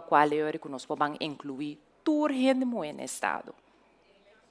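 A woman speaks clearly and with animation into a microphone.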